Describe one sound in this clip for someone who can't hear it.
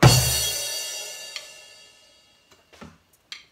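A cymbal crashes and rings out, slowly fading.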